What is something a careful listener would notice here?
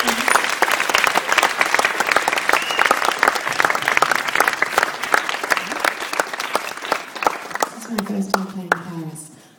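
A crowd claps and cheers loudly in a large hall.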